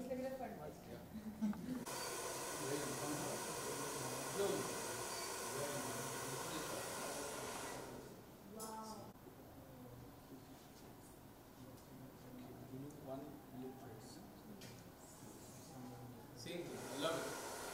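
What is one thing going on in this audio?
Young men and women talk and laugh nearby in a room.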